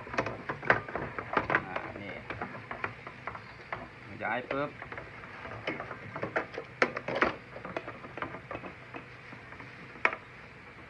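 Plastic parts click and knock close by.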